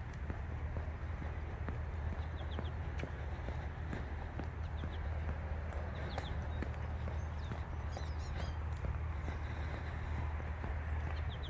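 Footsteps tread steadily on a wet paved path.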